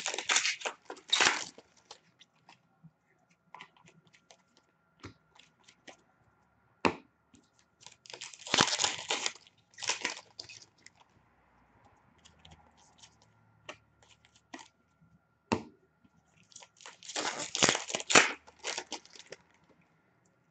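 A plastic wrapper crinkles and tears as hands open it.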